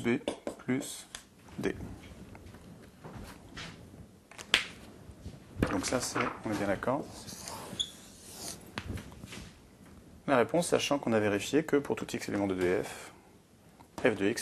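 A man explains calmly, close to a microphone.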